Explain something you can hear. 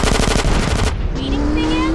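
An explosion bursts with a loud roar.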